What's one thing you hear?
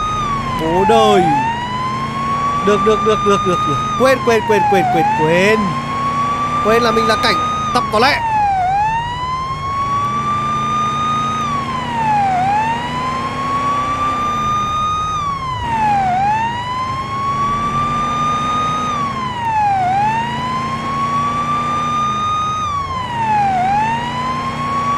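A car engine hums as the car drives.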